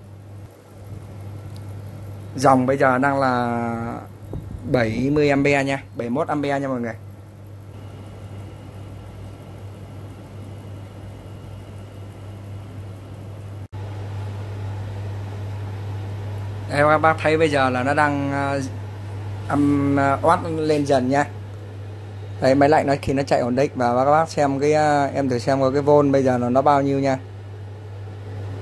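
A power inverter hums steadily.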